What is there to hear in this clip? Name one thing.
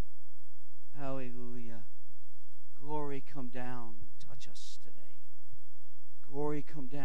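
An elderly man speaks slowly into a microphone, in short bursts.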